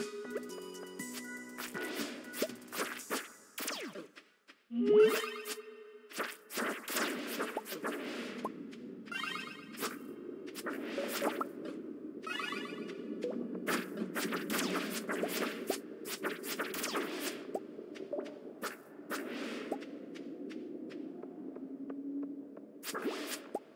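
A sword swishes and strikes over and over in quick bursts.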